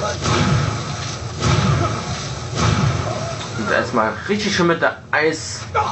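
A magic spell crackles and whooshes with a bright surge.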